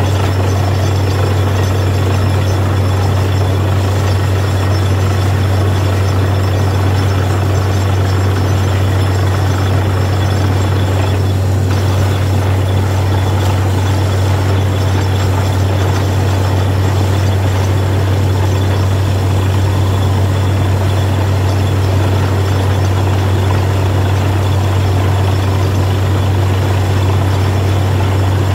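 A drill rumbles and grinds into the ground.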